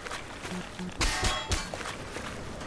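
A crowbar strikes a concrete wall with a metallic clang.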